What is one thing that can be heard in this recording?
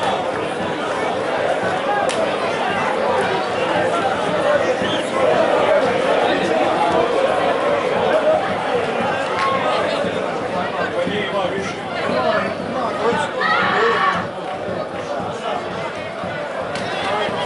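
A stadium crowd murmurs and cheers outdoors.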